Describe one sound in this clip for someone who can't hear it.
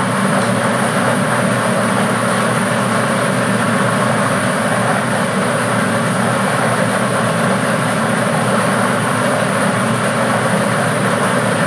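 Plastic balls rattle and clatter steadily inside a spinning drum.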